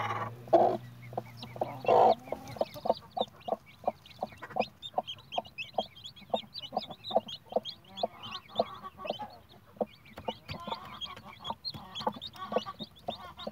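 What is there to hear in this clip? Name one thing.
A hen clucks softly in low, short bursts.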